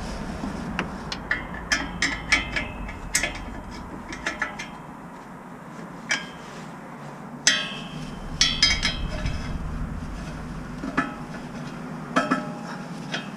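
Metal parts clink and clatter close by.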